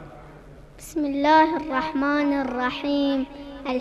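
A young boy chants loudly through a microphone.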